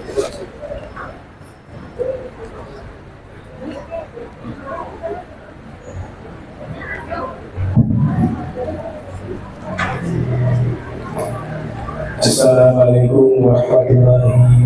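A large crowd murmurs and chatters quietly nearby.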